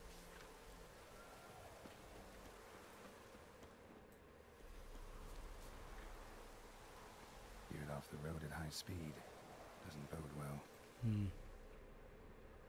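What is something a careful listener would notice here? Footsteps crunch through grass and undergrowth.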